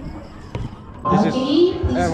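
Men and women chatter nearby in a crowd.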